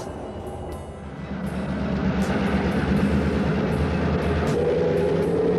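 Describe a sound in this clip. A passenger train rumbles past.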